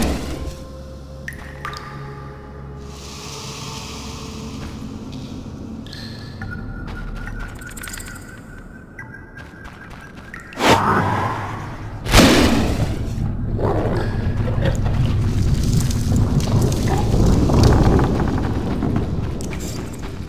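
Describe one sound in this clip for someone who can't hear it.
Footsteps tread slowly over soft ground.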